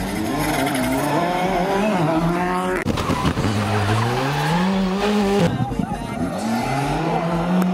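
A rally car engine revs hard and roars past, shifting gears.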